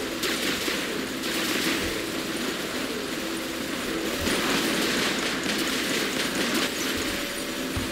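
Explosions boom close by.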